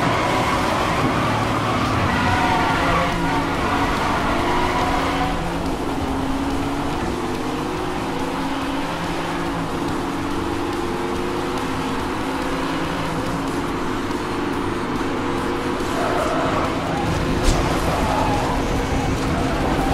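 A sports car engine roars at high speed and revs up through the gears.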